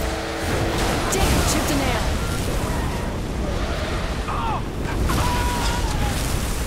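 Explosions boom and roar loudly.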